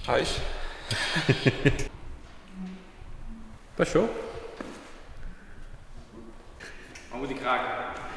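A young man talks with animation close by, in a large echoing room.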